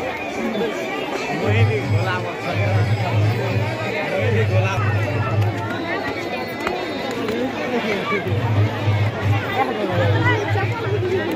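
A large outdoor crowd of men and women chatters all around.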